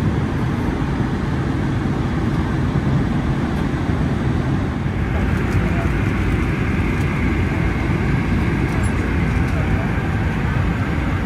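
A steady, loud roar of jet engines fills an aircraft cabin.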